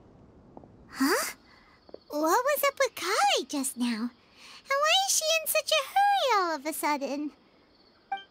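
A girl speaks in a high, chirpy voice.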